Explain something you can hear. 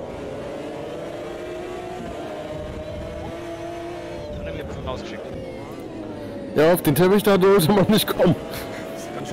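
A race car engine drones steadily, shifting in pitch as it accelerates and slows.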